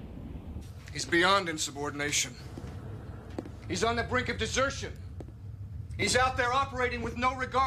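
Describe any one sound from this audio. An older man speaks calmly nearby.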